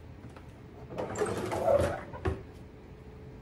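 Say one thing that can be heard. A wooden drawer slides shut with a knock.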